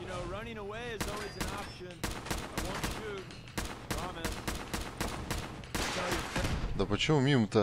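A rifle fires repeated shots.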